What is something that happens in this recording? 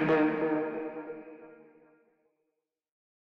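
An acoustic guitar chord rings out and slowly fades away.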